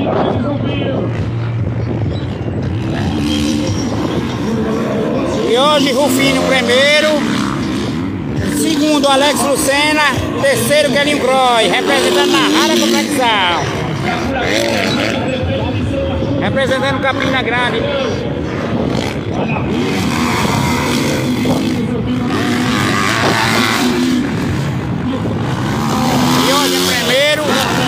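Motorcycle engines rev and whine as dirt bikes race.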